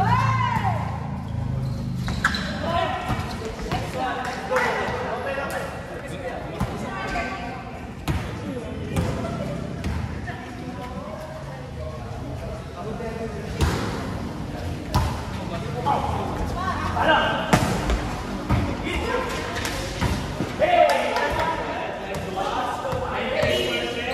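A volleyball thuds sharply as players strike it.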